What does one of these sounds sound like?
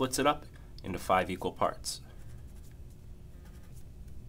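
A pen scratches lightly across paper.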